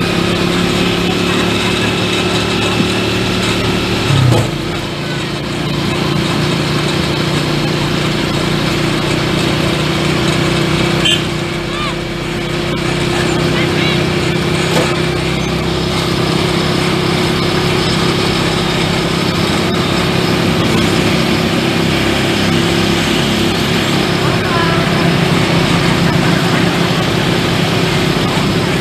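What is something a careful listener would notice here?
A motorcycle tricycle engine drones as it drives along a road.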